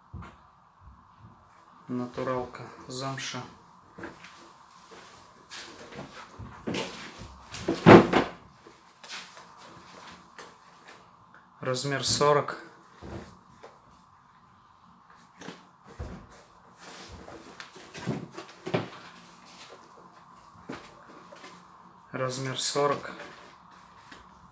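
Leather boots rustle and thump as hands handle them.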